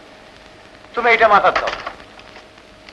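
A man speaks out loudly and briefly, heard through a hissy old recording.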